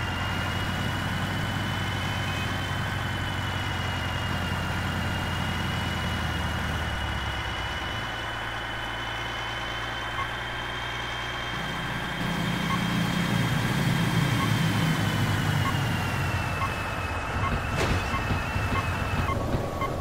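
A truck engine drones steadily, with a low rumble that shifts partway through.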